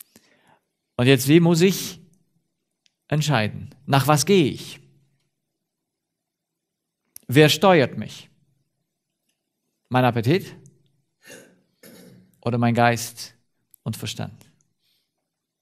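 A man speaks with animation in short bursts.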